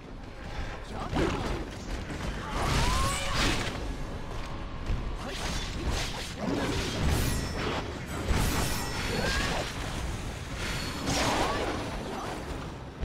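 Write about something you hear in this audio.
A beast roars and snarls.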